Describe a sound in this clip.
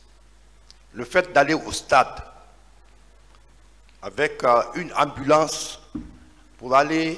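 A middle-aged man speaks into a microphone in a firm, measured voice, with pauses.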